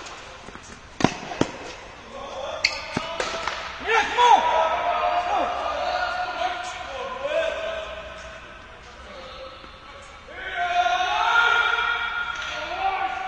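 Tennis rackets strike a ball back and forth in an echoing indoor hall.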